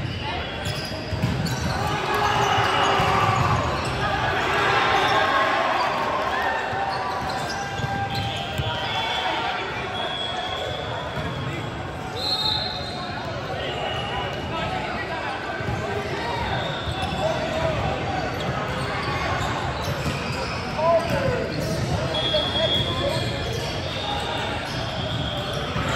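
Young men talk and call out to each other in a large echoing hall.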